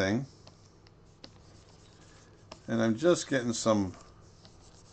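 An older man speaks calmly and close to a microphone.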